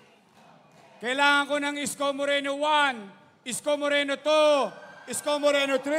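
A man shouts loudly through a microphone over loudspeakers.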